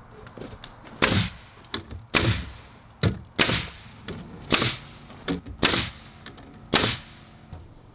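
A nail gun fires sharp bangs into wood.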